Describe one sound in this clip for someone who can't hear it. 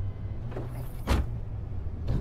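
A car trunk slams shut.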